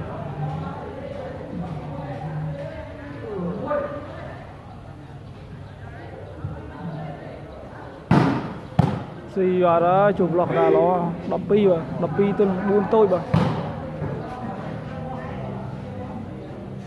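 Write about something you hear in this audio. Men chatter in a crowd nearby throughout.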